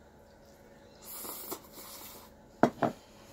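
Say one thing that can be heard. A young woman slurps noodles close to a microphone.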